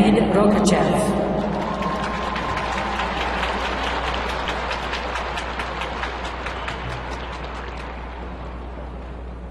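A crowd applauds, slowly fading.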